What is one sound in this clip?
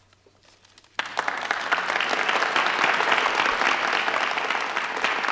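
A crowd bursts into loud applause and cheering.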